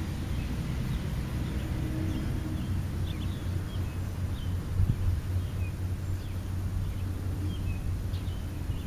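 Wind rumbles low and steady outdoors.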